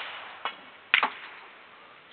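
A cue strikes a pool ball with a sharp click.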